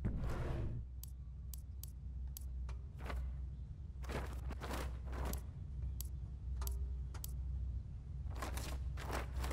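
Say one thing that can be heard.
Short electronic menu clicks tick in quick succession.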